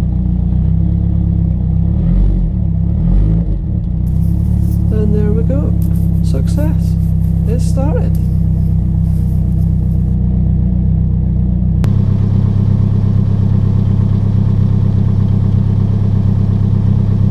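A car engine idles close by with a low, steady rumble.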